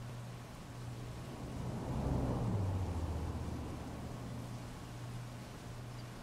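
Heavy rain pours steadily onto a wet street.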